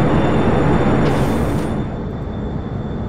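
A heavy door slides shut with a thud.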